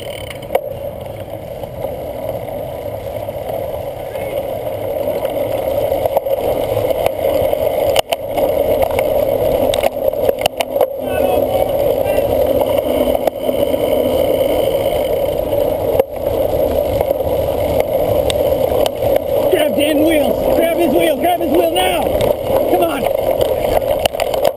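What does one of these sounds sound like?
Wind buffets a microphone on a moving bicycle.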